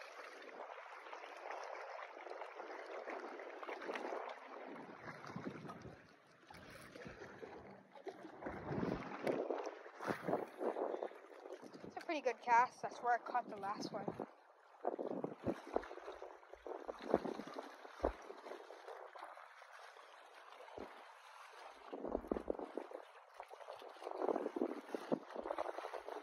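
Small waves lap and splash gently on open water.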